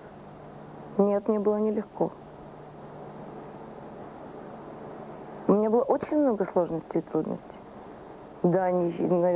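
A woman speaks calmly into a close microphone, in short bursts.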